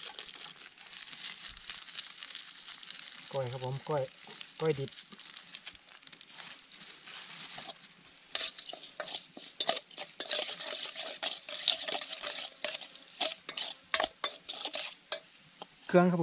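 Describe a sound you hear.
Hands squish and stir food in a metal bowl.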